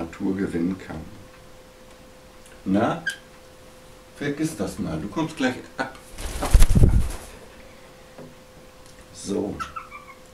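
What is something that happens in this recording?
A man talks calmly and close by.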